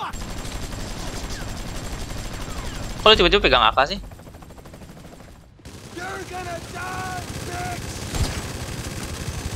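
A helicopter's rotor thumps steadily overhead.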